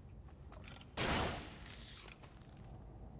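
An energy whip lashes out with a hissing whoosh.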